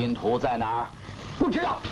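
A man speaks sharply and demands.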